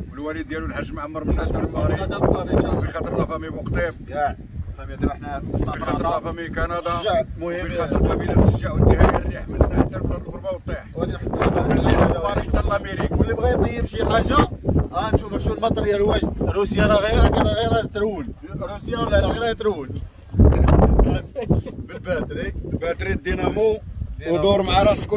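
Men talk with animation close by, outdoors.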